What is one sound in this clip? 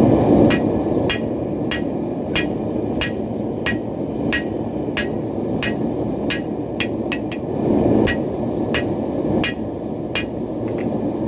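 A hammer strikes metal in quick ringing blows.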